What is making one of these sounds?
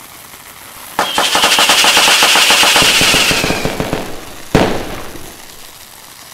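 Fireworks crackle and pop loudly overhead.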